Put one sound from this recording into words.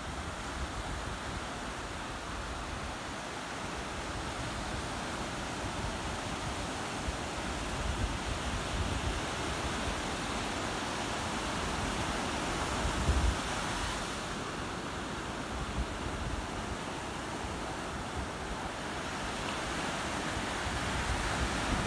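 Small waves wash and break steadily onto a beach.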